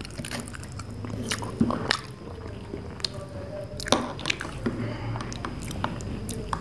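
A spoon clinks against a glass while stirring a drink.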